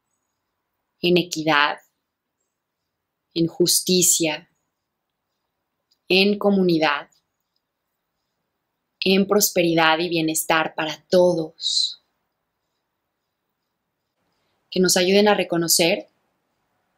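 A young woman speaks calmly and slowly into a close microphone, pausing between phrases.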